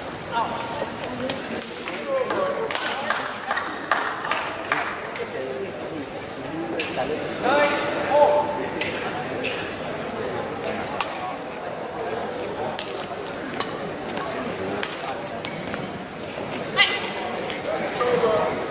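Rackets strike a shuttlecock with sharp cracks that echo through a large hall.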